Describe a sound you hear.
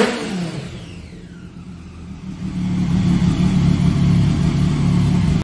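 A motorcycle engine idles with a low, steady rumble that grows louder.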